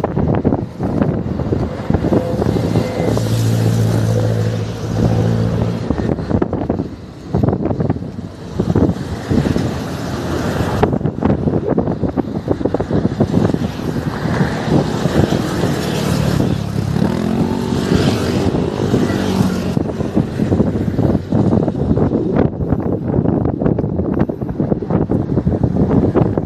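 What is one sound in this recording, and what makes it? Traffic roars past close by outdoors.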